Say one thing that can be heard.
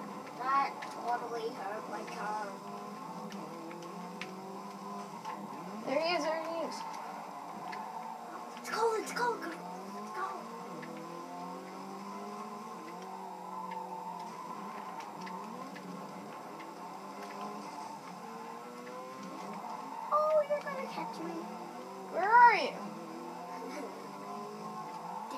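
Car engines in a racing game drone and whine through a television speaker.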